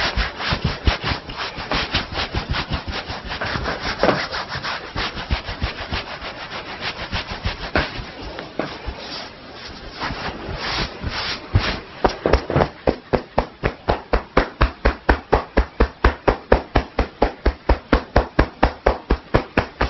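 Hands tap and pat rapidly in a steady rhythm.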